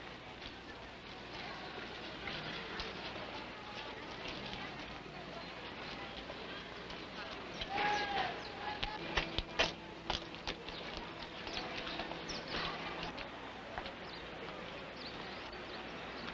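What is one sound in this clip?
Footsteps shuffle on a dirt ground.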